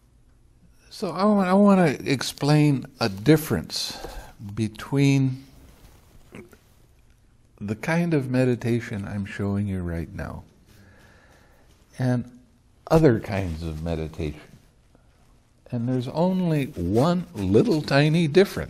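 An elderly man speaks calmly and with expression, close to a microphone, pausing between phrases.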